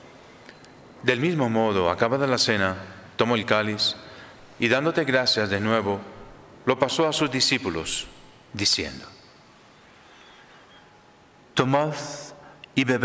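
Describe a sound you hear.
A middle-aged man speaks calmly into a microphone, in short phrases.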